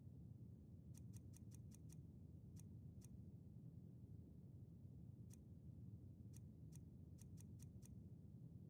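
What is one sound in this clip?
Soft game menu clicks tick in quick bursts.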